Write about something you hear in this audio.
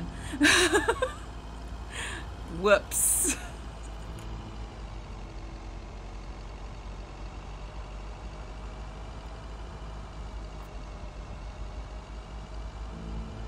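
A truck engine hums steadily as it drives along a road.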